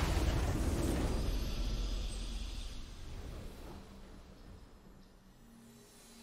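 A fanfare plays for the win.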